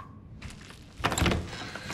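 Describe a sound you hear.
A shotgun is raised with a loud metallic clatter.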